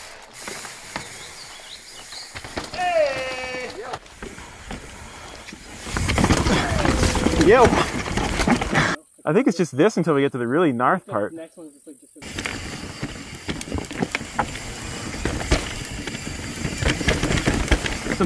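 Bicycle tyres rumble and crunch over rocky dirt.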